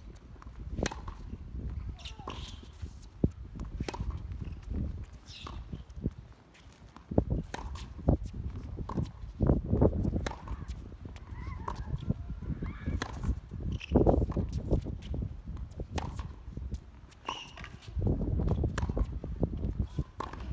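Tennis balls are struck by rackets with sharp pops.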